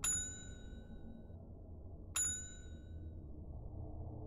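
A bright bell chimes twice, ringing out briefly each time.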